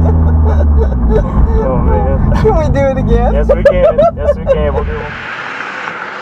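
A car engine roars loudly from inside the car.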